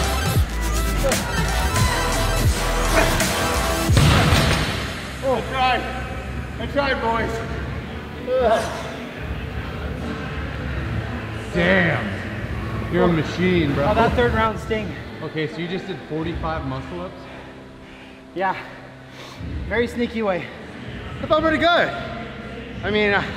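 A man breathes heavily, out of breath.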